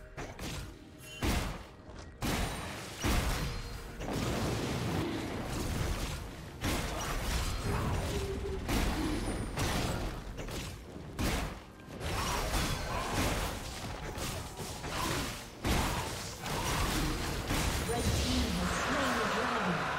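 Game combat effects clash and burst repeatedly.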